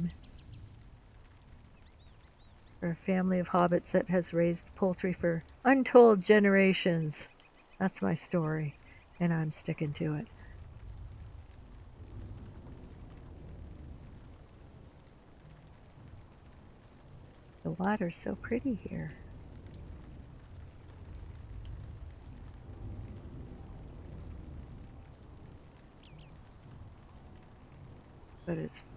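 Water laps gently in small waves.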